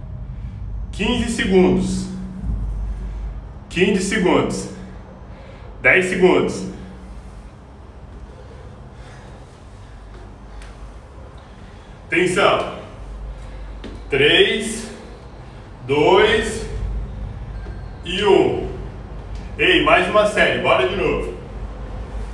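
A young man speaks close by in short, lively bursts.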